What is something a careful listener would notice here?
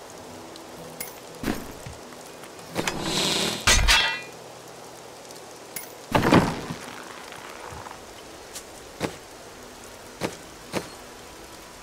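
Game menu clicks sound in short bursts.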